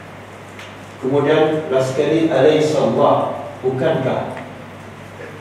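A middle-aged man speaks calmly into a microphone, lecturing.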